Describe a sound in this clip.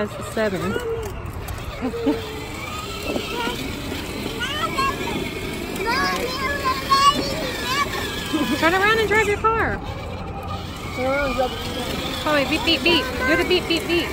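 A woman close by talks to a small child in a cheerful, animated voice.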